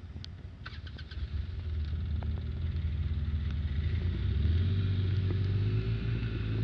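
An ATV engine revs up and roars as it pulls away.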